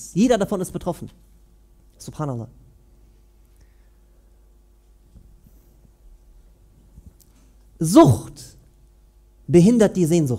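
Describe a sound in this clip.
A man speaks calmly in short phrases with long pauses, heard through a microphone.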